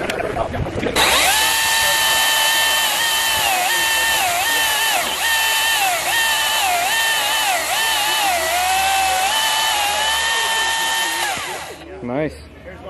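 An electric chainsaw whirs loudly, its pitch dipping as it cuts through a log.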